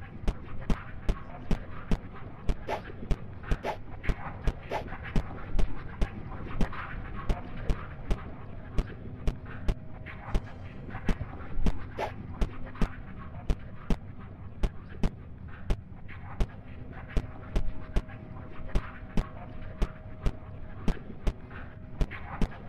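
Footsteps tap in a quick, even rhythm on a hard floor.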